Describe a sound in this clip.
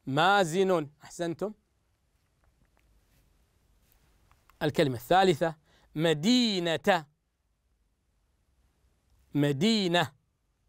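A young man speaks slowly and clearly into a microphone, pausing between words as if dictating.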